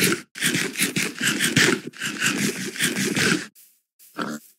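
Blocks crunch rapidly and repeatedly as they are dug and broken.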